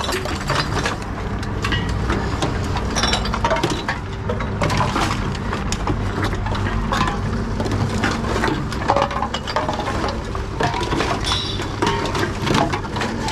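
Bottles and cans clink and rattle as they are fed into a recycling machine.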